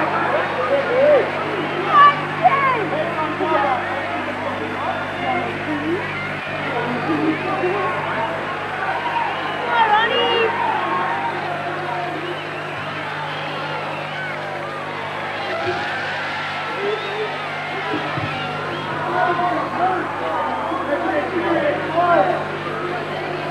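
A crowd murmurs and shouts throughout a large echoing hall.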